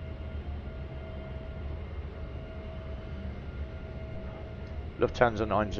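A jet airliner's engines hum steadily at idle.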